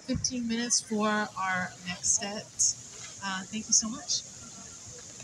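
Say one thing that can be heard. A woman sings into a microphone.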